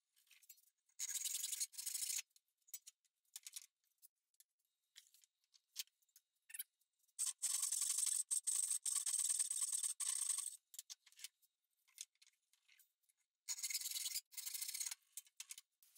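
A hand saw rasps through wood in quick, short strokes.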